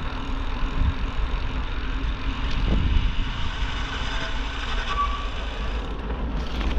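Bicycle tyres roll over a gravel path.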